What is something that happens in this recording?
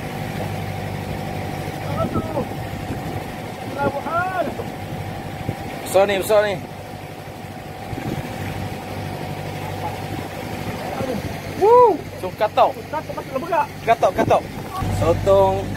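Water splashes beside a boat.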